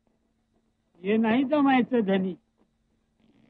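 A middle-aged man sings out loudly nearby.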